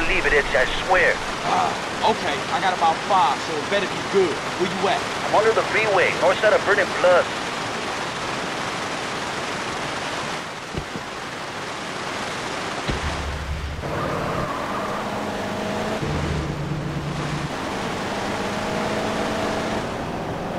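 Rain pours steadily.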